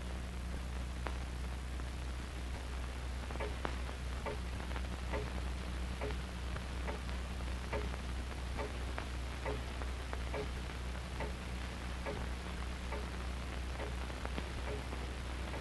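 A clock ticks steadily.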